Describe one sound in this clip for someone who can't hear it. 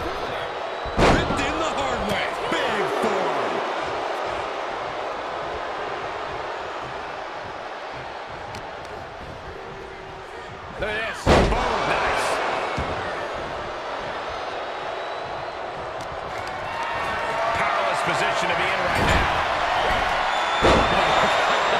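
Heavy thuds of bodies slamming onto a wrestling ring mat ring out.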